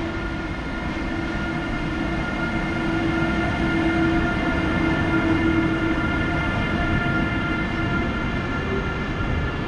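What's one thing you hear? An electric locomotive hums and whines as it passes close by, hauling a container freight train.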